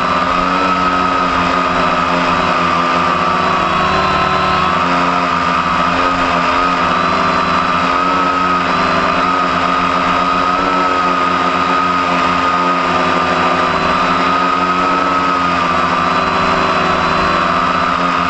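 Drone propellers whine with a steady, slightly wavering high buzz.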